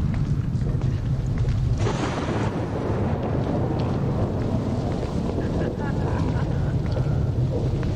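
Soft footsteps rustle through wet grass.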